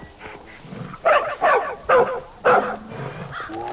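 A bear growls and roars loudly nearby.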